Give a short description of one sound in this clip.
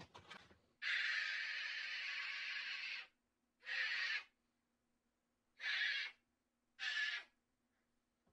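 A young girl screams loudly in short bursts.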